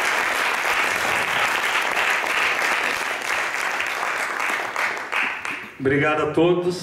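An audience applauds in a large hall.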